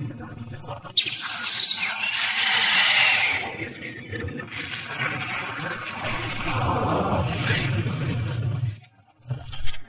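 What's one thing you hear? A loud energy blast roars and whooshes.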